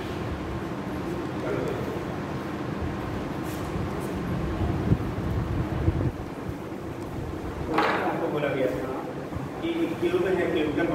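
A man speaks loudly and clearly in an echoing room, as if teaching.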